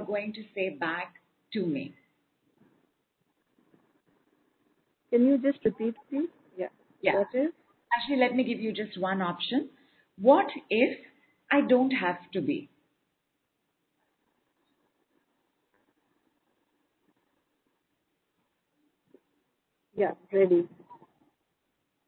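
A woman speaks calmly, close to a microphone, with pauses.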